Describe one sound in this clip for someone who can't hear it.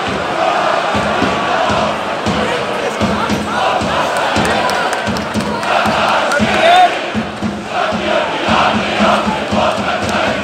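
Fans nearby clap their hands in rhythm.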